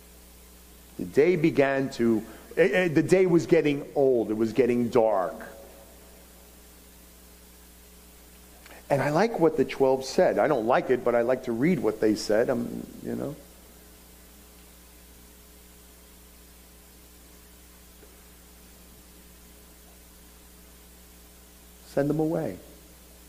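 A middle-aged man speaks calmly through a headset microphone, with long pauses.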